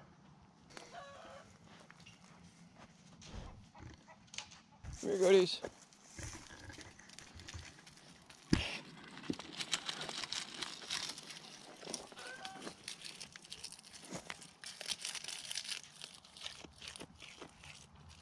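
Goats chew and nibble at a wire fence.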